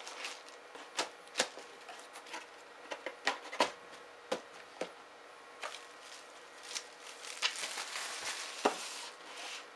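Cardboard knocks and taps against a hard surface.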